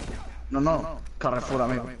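Gunfire bangs in a video game.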